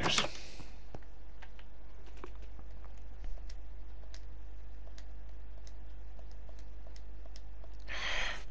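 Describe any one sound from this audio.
Soft clicks tick as items are moved.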